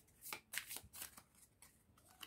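Cards are shuffled with quick soft flicks.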